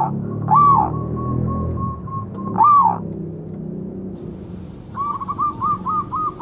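A zebra dove coos in short, trilling phrases.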